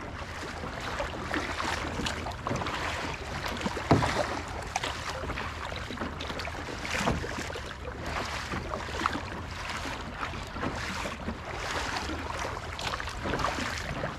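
Small waves lap against a kayak's hull.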